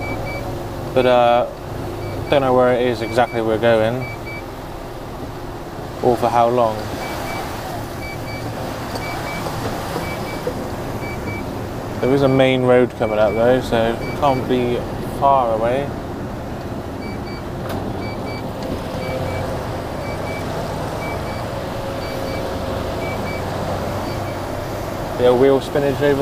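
A man talks in short bursts close to a microphone.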